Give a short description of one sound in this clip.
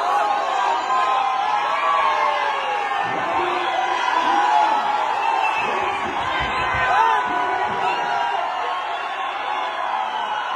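Young men shout and whoop close by.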